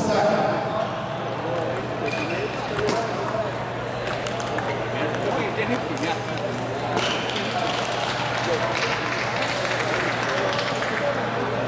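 Ping pong balls tap on a table.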